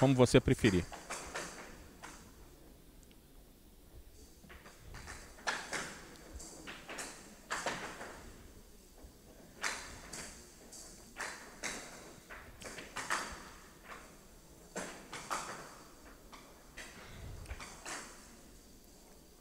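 A ball rattles and clacks across a wooden table.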